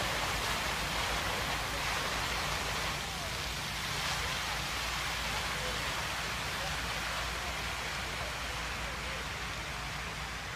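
Fountain jets splash and rush steadily into a pool outdoors.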